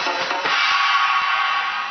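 Drumsticks tap on rubber drum pads.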